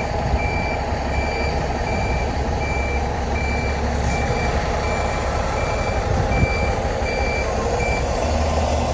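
A bus warning beeper sounds in even, repeated beeps.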